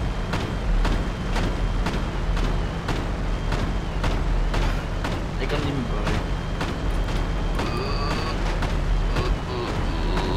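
A cannon fires single shots at a steady, even pace.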